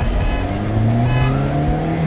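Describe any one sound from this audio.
A car horn honks.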